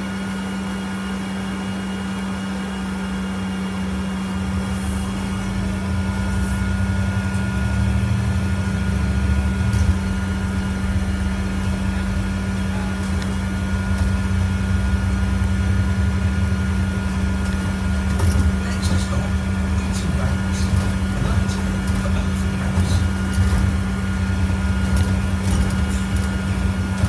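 Bus panels and windows rattle as the bus drives.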